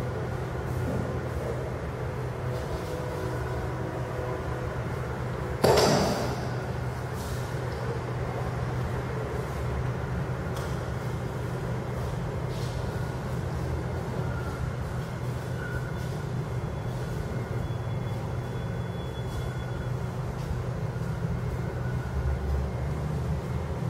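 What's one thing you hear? Bare feet shuffle and thud on a wooden floor.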